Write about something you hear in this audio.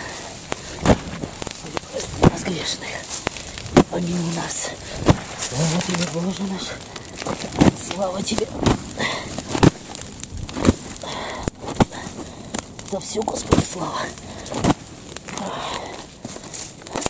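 A fire crackles and pops in dry brush.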